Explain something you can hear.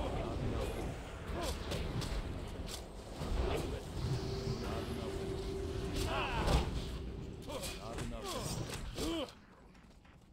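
Swords clash and spells burst in a busy fight.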